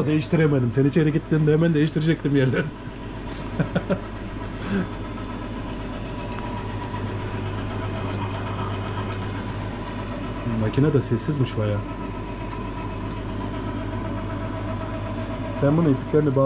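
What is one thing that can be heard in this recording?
A meat grinder motor hums steadily.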